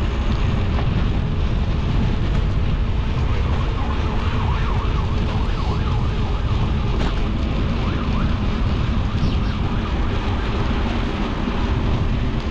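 Wind buffets loudly against a moving bicycle.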